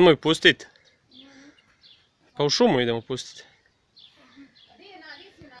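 A young boy talks nearby in short bursts.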